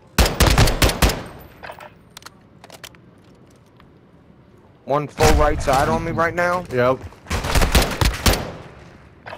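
Rapid gunfire rings out in short, loud bursts.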